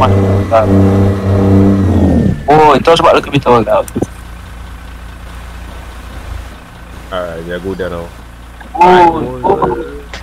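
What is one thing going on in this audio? A heavy truck engine rumbles and drones steadily.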